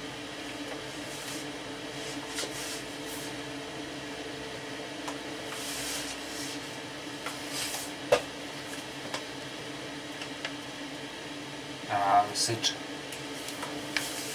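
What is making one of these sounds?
A small iron rubs and slides over wood.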